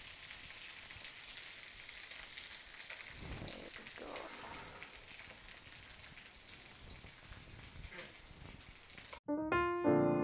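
Meat sizzles steadily on a hot griddle.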